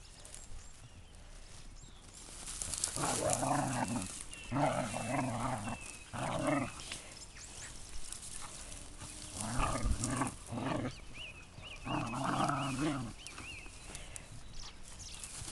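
Dogs rustle through tall dry grass.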